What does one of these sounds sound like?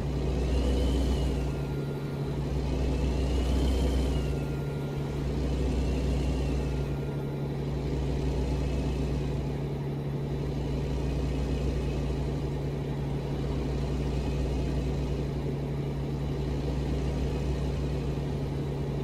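Tyres roll on the road with a steady rush.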